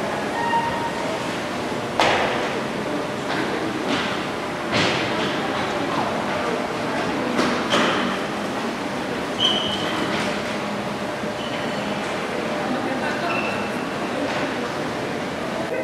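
Dancers' feet shuffle and step on a hard floor.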